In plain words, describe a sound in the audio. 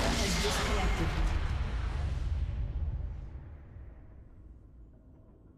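A deep magical blast roars and slowly fades away.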